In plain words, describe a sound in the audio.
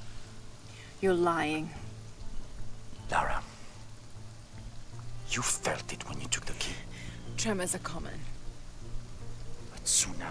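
A young woman speaks quietly and firmly.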